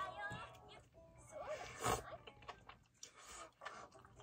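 A young woman slurps soup up close.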